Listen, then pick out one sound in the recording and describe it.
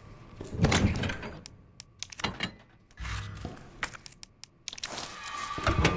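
Menu selection sounds click and chime.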